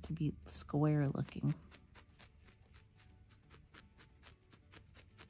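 A felting needle pokes rapidly into wool with soft, quick clicks.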